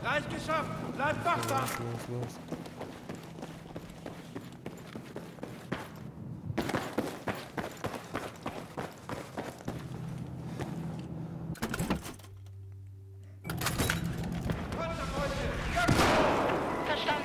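Footsteps crunch over rubble and debris.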